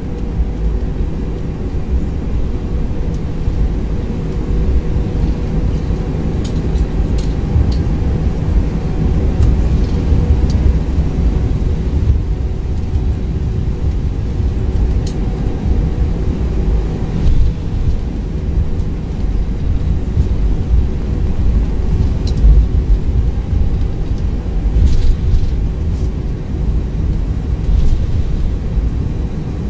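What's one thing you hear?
Jet engines roar with a steady low rumble.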